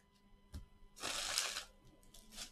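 Paper card packs slide and rustle.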